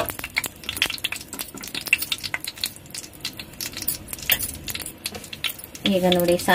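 Thick syrup bubbles and pops softly in a pan.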